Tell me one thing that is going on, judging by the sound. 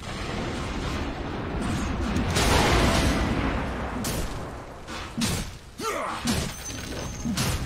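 Game battle effects crash and whoosh loudly.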